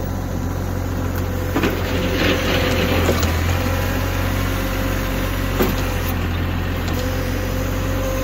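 A snow plow blade scrapes through snow.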